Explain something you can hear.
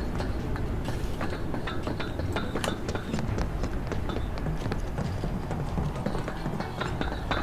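Footsteps clank quickly on metal grating.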